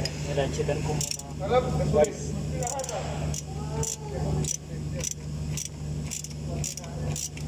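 A ratchet wrench clicks in quick, repeated bursts close by.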